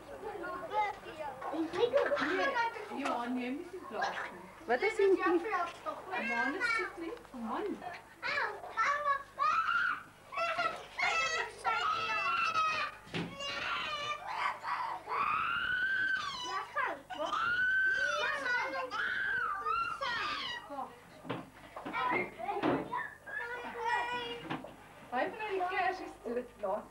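Young children chatter and call out close by.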